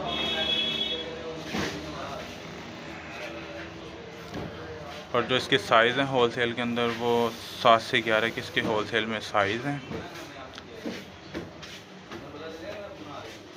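A leather shoe rustles softly as a hand turns it over.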